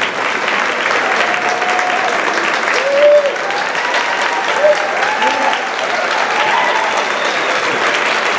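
A band plays music in the distance.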